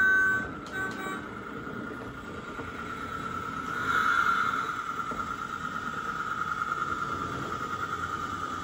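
Small train wheels click rhythmically over rail joints.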